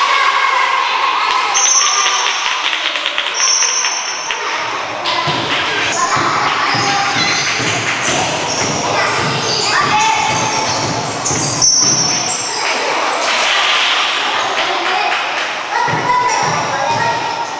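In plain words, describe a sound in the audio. Players and spectators call out and chatter in a large echoing hall.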